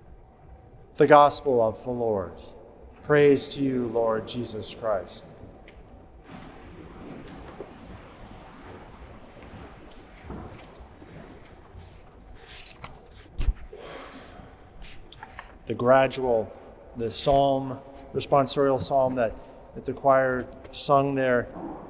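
A middle-aged man speaks calmly and warmly, close to a microphone.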